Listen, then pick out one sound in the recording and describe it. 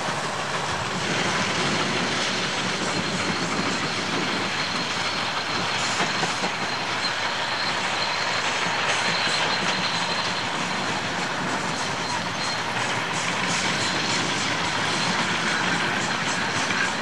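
A steam traction engine chugs steadily as it pulls a plough.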